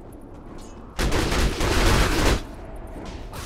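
Magic blasts and clashing weapons burst out loudly in a fight.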